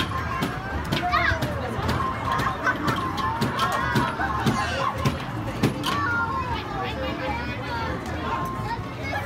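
A young woman speaks to small children with animation.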